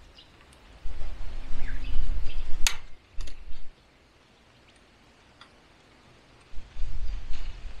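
A fence tool clicks as wire is tightened.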